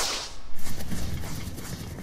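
Electricity crackles and sizzles in a burst.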